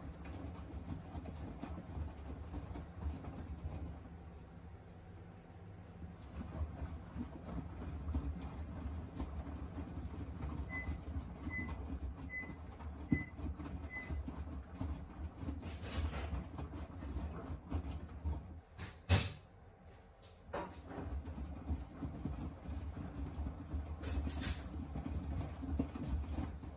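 A washing machine drum turns with a low, steady rumble.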